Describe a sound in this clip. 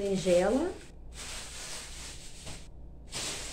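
A plastic bag crinkles in hands.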